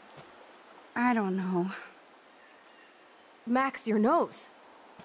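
A young woman speaks quietly and hesitantly.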